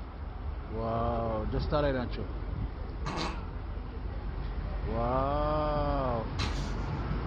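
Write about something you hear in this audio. A young man speaks in drawn-out, sing-song tones close to a microphone.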